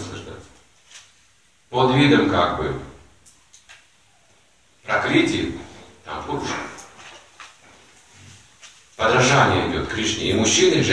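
An elderly man speaks calmly and deliberately, with pauses.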